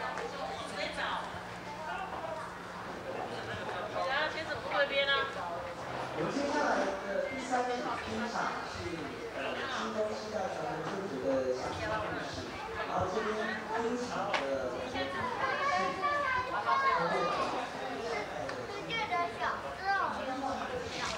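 Men and women chat in the background of a busy room.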